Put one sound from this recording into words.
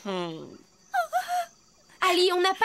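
A woman speaks with surprise.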